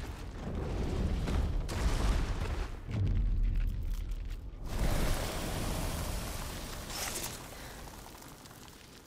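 A huge mass of crystal shatters and crumbles with a deep, roaring rumble that slowly fades.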